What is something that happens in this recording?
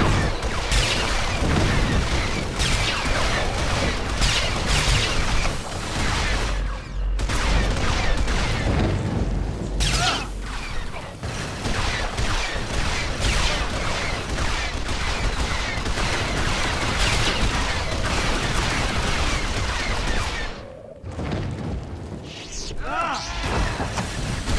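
Blaster shots fire rapidly in a battle.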